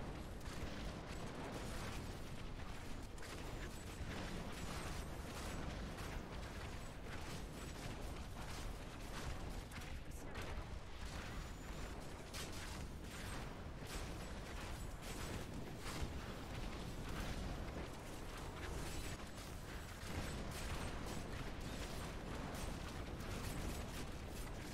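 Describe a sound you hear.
Fiery spell blasts roar and crackle continuously.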